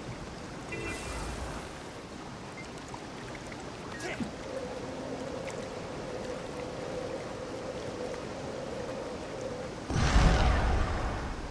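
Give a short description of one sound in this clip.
Water splashes as a figure wades through it.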